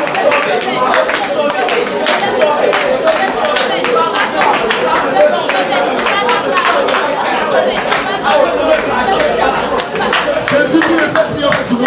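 A group of people clap their hands in a quick, steady rhythm.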